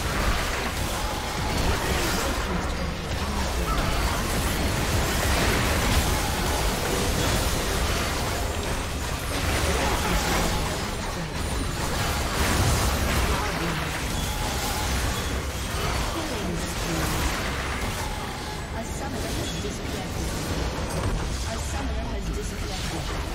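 Game spell effects and explosions crash and burst in quick succession.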